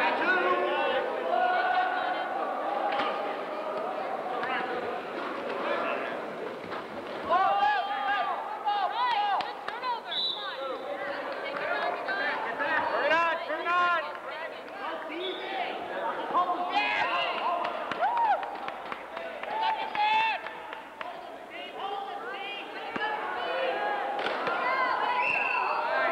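Several people talk and shout in a large echoing hall.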